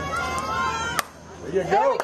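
A bat cracks sharply against a softball.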